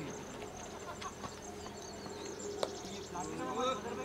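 A cricket bat strikes a ball in the distance.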